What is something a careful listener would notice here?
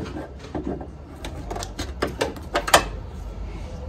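Plastic parts click and rattle.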